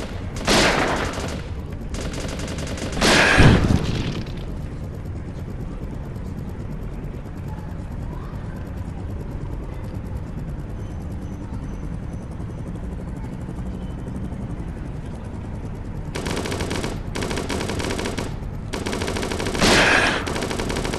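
Rifle shots bang sharply, several times.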